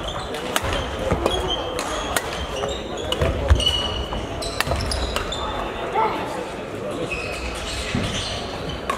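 Rackets strike shuttlecocks with sharp taps.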